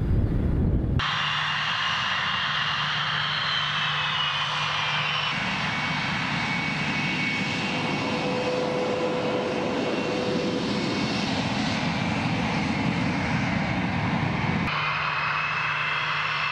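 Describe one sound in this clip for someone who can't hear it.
A jet engine roars loudly with a high whine.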